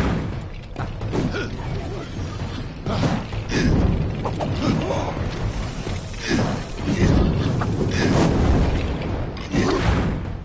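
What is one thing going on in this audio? Swords clash and strike in a fierce melee.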